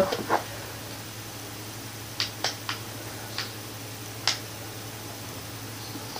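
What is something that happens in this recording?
A football video game plays quietly through television speakers.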